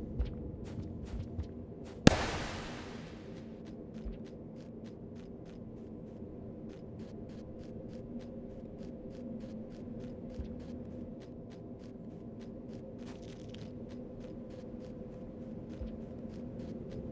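Quick light footsteps patter steadily.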